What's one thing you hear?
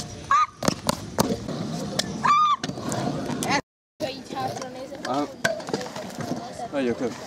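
Scooter wheels roll and clatter on concrete.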